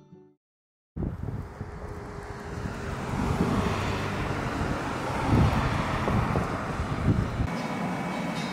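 Cars drive past close by, tyres hissing on the road.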